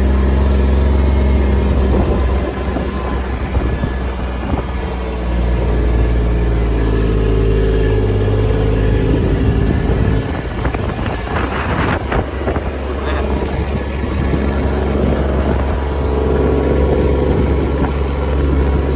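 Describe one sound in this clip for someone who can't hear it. Tyres roll over grass.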